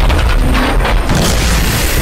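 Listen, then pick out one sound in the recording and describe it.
Gunfire crackles.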